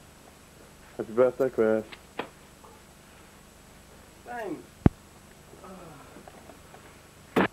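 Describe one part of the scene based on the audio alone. A young man speaks excitedly close by.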